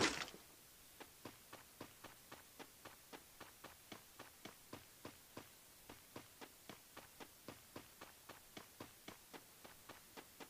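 Footsteps patter quickly and evenly on grass.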